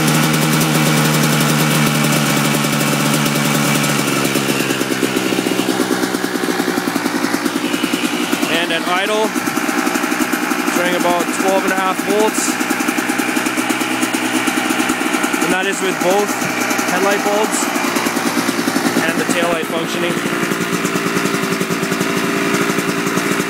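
A two-stroke dirt bike engine idles.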